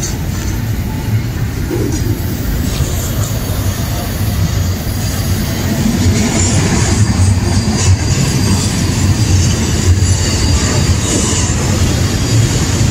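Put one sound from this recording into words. A freight train rumbles past close by, its wheels clattering steadily over the rails.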